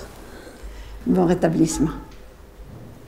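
A middle-aged woman speaks warmly and calmly.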